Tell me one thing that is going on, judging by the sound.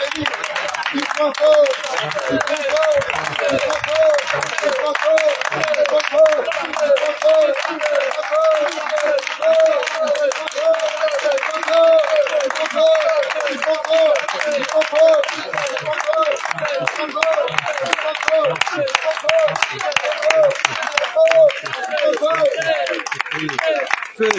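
People clap their hands in a steady rhythm.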